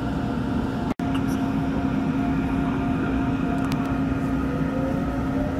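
An electric commuter train's motors whine, rising in pitch as it pulls away.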